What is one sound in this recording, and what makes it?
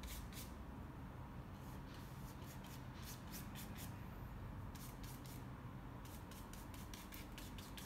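A paintbrush softly brushes across a canvas in short strokes.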